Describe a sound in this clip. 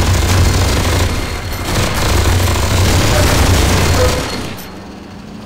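A rapid-fire gun roars in a continuous, rattling burst and then stops.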